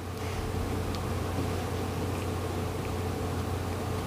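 A man sniffles and sobs softly close to a microphone.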